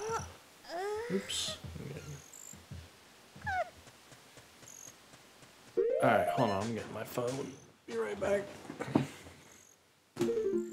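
A young man talks casually into a headset microphone, close by.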